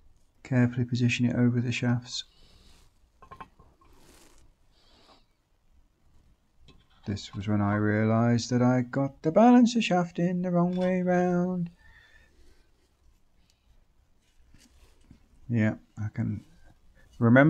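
Metal engine parts clink and scrape as they are handled.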